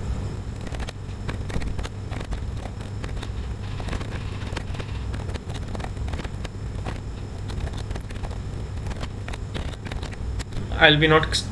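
Keyboard keys click quickly as someone types.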